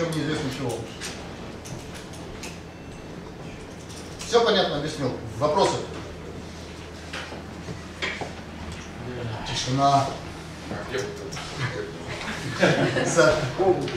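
A man lectures calmly, heard from a distance.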